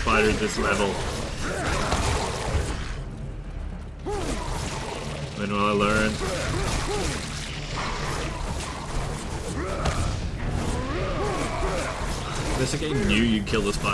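A whip swishes and cracks through the air.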